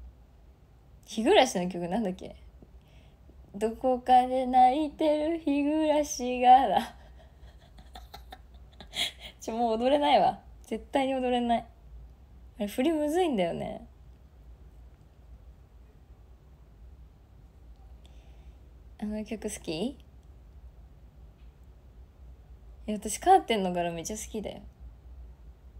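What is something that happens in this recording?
A young woman speaks brightly and with animation, close to a microphone, in short bursts with pauses.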